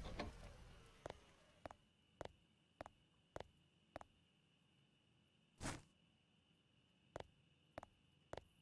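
Footsteps thud at an even walking pace on hard ground.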